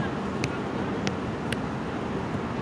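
A football is kicked nearby with a dull thud.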